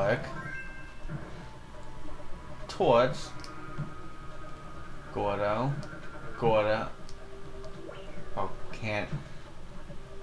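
An electric spark crackles and buzzes in short bursts.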